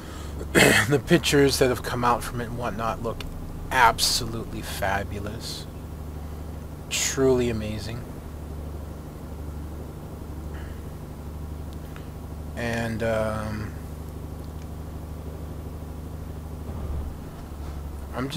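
A truck engine hums low and steady.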